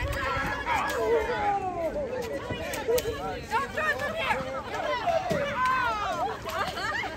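Children shout and squeal nearby outdoors.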